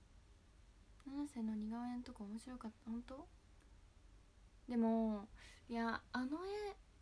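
A young woman speaks casually and close to a microphone.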